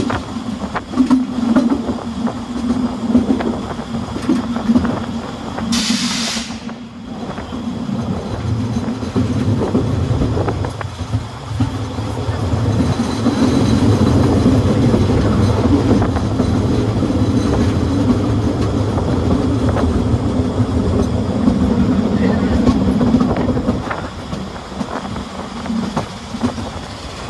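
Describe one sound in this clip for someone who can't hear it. A steam locomotive chugs and rumbles steadily along the track.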